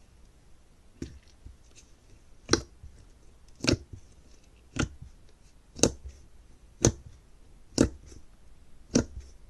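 Thick slime pops and squelches as fingers press into it.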